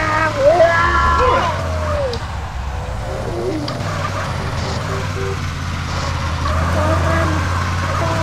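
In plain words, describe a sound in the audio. Metal scrapes against the road.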